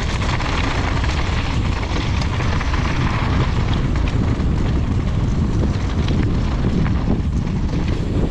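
Small stones click and clatter under the wheels.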